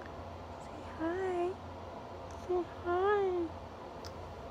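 A woman coos in a high, sing-song voice.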